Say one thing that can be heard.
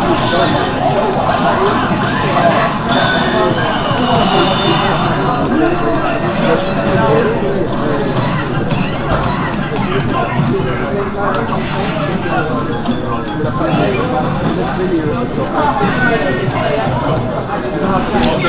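Game music plays through a speaker.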